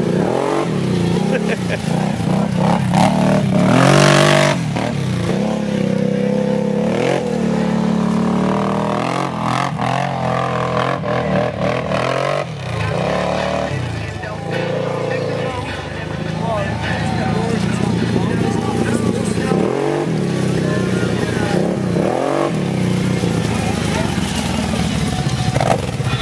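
An all-terrain vehicle engine revs and rumbles, rising and falling in pitch.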